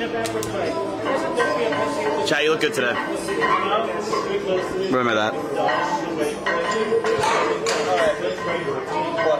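A young man talks close up, casually and with animation.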